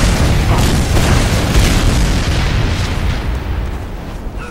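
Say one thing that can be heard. An explosion booms and fire roars nearby.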